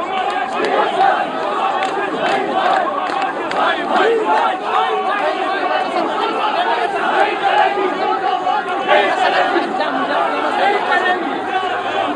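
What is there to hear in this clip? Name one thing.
A large crowd of men chants and shouts loudly outdoors.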